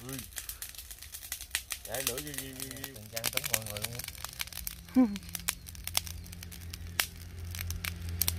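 Fish crackle and pop as they grill over hot charcoal.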